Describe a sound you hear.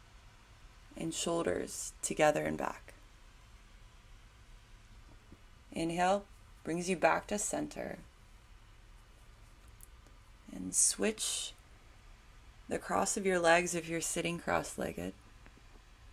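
A woman speaks calmly and softly, close by, with pauses.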